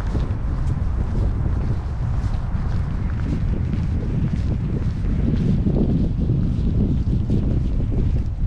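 Wind rumbles steadily outdoors in the open air.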